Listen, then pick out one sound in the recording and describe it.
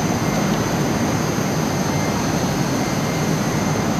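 Sliding doors of a metro train open.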